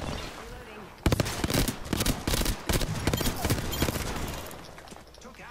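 Rapid gunfire bursts from a game weapon.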